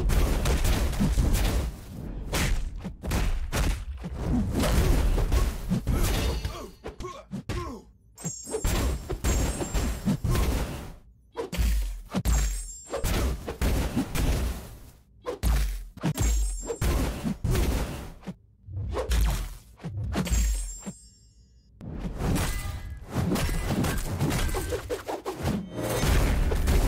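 Punches and kicks land with heavy thuds in quick bursts.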